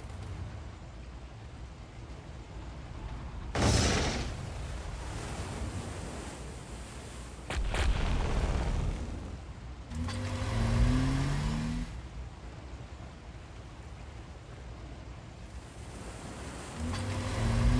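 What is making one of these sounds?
Water rushes steadily along a ship's hull.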